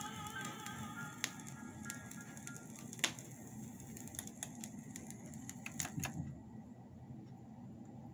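A vinyl record crackles and pops softly under the stylus.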